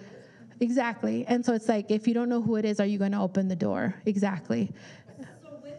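A woman speaks calmly and warmly into a microphone, close by.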